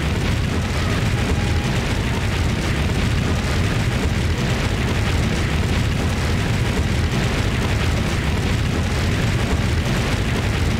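Flames roar steadily with a deep rumble.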